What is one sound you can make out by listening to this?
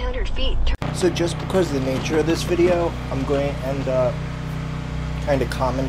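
A man talks outdoors near a truck.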